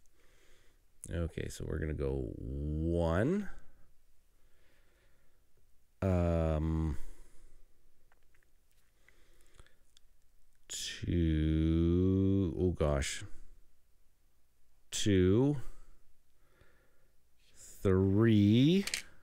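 A man talks with animation close to a microphone, in short bursts with pauses.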